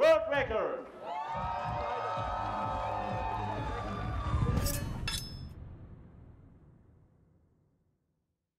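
A crowd cheers outdoors and slowly fades.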